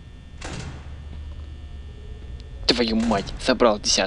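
A heavy door slams shut.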